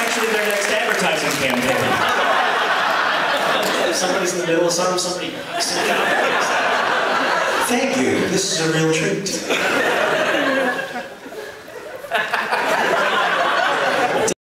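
A man talks into a microphone, heard over loudspeakers in a large hall.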